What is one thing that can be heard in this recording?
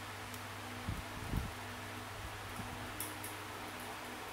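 Fingers tap lightly on a touchscreen.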